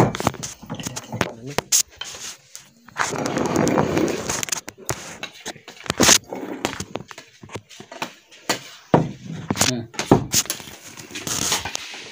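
Dishes and cups clink on a wooden table.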